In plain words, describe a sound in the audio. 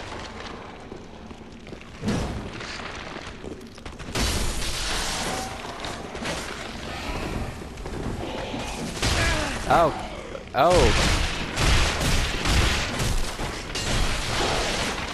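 Heavy footsteps scrape over stone.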